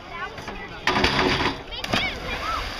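A diver splashes into water.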